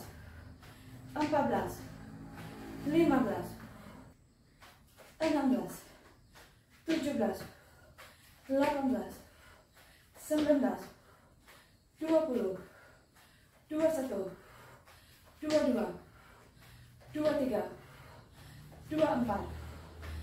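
Sneakers thud softly on a floor mat.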